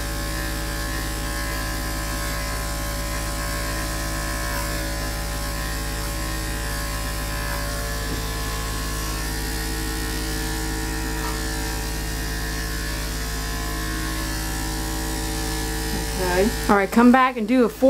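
Electric clippers buzz steadily up close.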